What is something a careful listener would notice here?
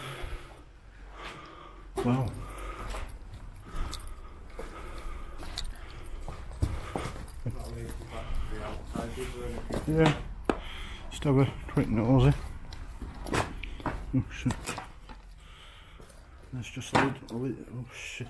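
Footsteps crunch over loose rubble and broken bricks.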